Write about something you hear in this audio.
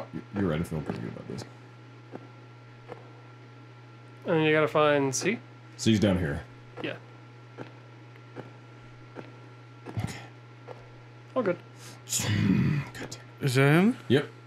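Footsteps tread steadily along a hard floor.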